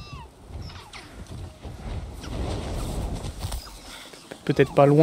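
Wind rushes past in a rising roar during a fast glide.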